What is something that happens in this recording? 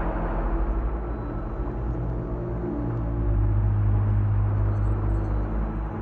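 A small submarine's engine hums low and steadily underwater.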